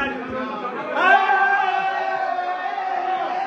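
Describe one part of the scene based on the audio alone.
A group of men sing together loudly.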